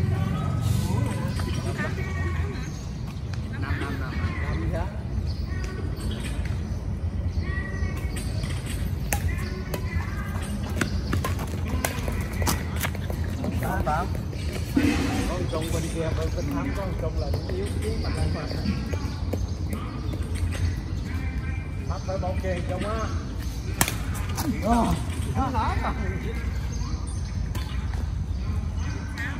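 Shuttlecocks are struck with badminton rackets in sharp taps.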